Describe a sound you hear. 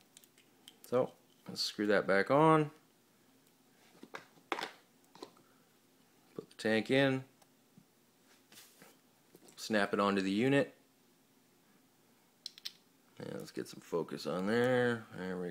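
Small metal parts click softly as they are screwed together and handled.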